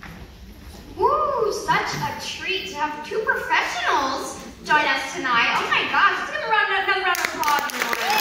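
A young woman speaks with animation through a microphone in a large hall.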